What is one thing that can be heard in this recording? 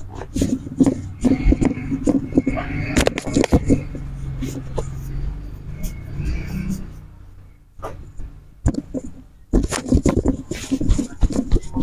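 Hands pat and thump rhythmically on a man's shoulders and back.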